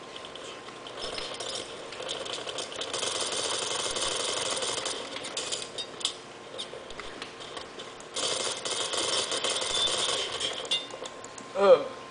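Gunfire from a video game rattles through small speakers.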